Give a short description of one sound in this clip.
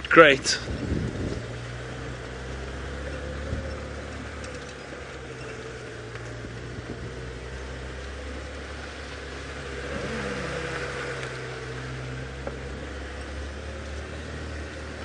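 Tyres roll over a dirt track.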